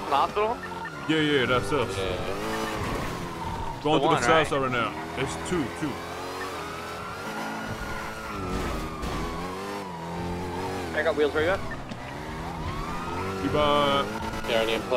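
A car engine revs and roars as the car speeds up and slows down.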